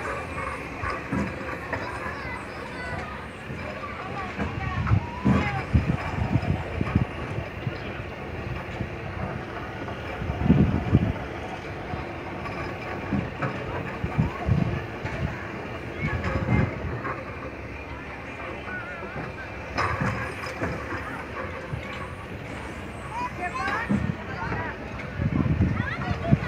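A small kiddie ride car rolls and rumbles along a steel track.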